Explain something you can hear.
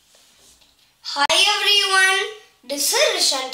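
A young boy speaks loudly and with animation close by.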